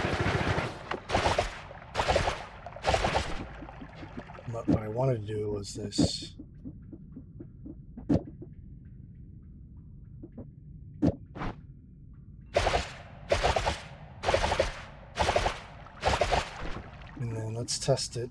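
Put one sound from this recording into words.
Magic blasts burst with sharp whooshes, again and again.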